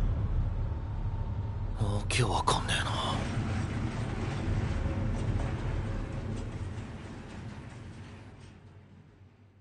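A massive storm roars and rumbles.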